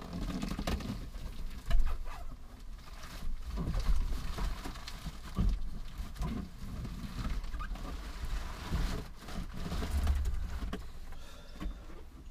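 A bicycle knocks and rattles as it is loaded into the back of a car.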